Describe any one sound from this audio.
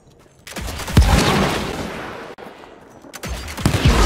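An explosion booms and roars, then fades.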